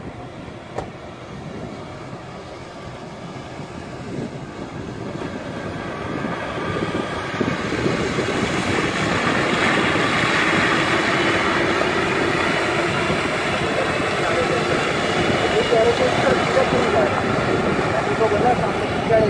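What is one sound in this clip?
Water splashes under a vehicle's tyres.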